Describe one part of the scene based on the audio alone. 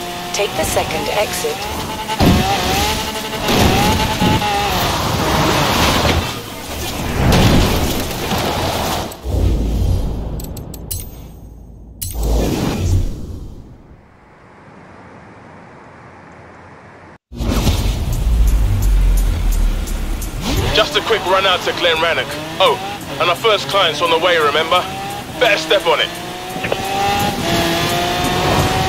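A sports car engine roars, revving up and shifting gears.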